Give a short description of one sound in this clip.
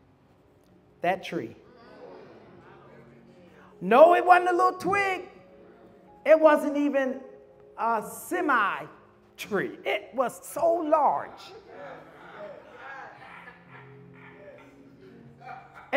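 A man preaches with animation into a microphone, in bursts, heard over loudspeakers in a room that echoes.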